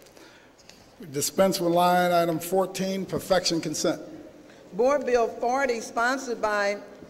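A woman reads out through a microphone in a large hall.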